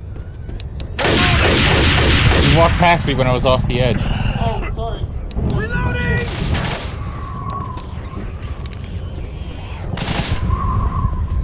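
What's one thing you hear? Gunshots fire rapidly in a game.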